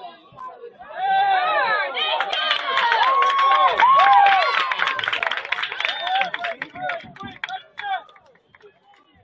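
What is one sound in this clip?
A crowd of spectators cheers loudly outdoors.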